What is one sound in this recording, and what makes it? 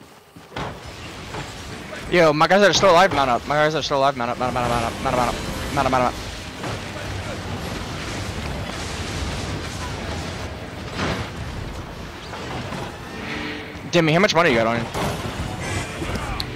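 Magic spells crackle and whoosh in a busy battle.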